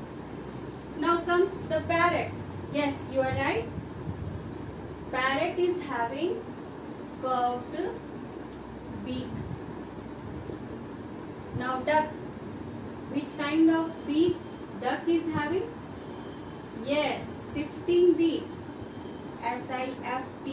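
A woman speaks calmly nearby, as if teaching.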